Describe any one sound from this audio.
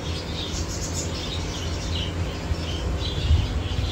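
Water bubbles steadily from an aquarium air filter.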